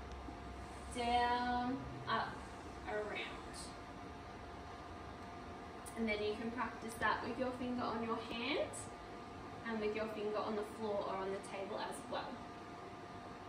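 A woman speaks clearly and slowly, close by.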